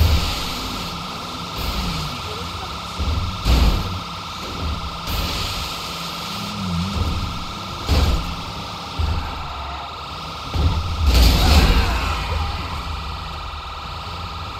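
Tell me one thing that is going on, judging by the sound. A heavy truck engine rumbles steadily as it drives.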